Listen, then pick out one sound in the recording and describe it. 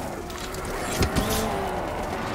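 A heavy impact thuds close by, scattering debris.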